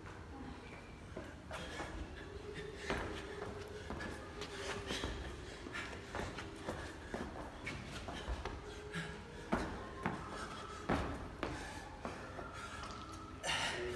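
A man lands jumps and drops to the floor during burpees.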